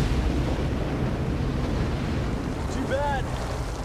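Ocean waves break and wash in a rush of foam.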